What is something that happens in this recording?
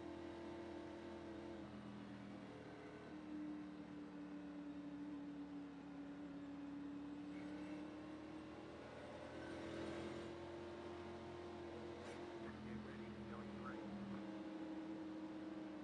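A race car engine hums steadily at low speed, its pitch rising and falling slightly.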